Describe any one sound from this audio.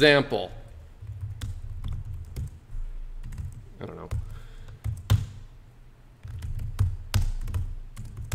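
Keys clack on a keyboard as someone types.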